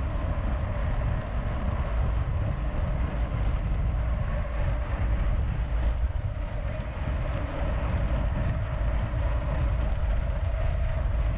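Wind rushes loudly past, as heard outdoors while riding.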